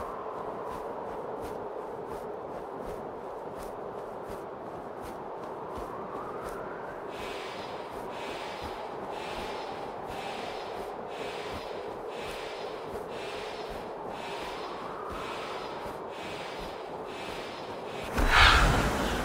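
Wind rushes steadily past a gliding bird.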